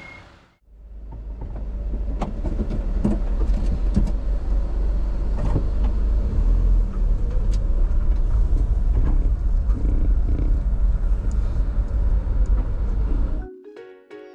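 A large bus engine rumbles as the bus pulls away and drives past close by.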